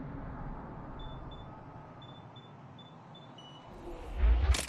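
Soft electronic beeps tick repeatedly.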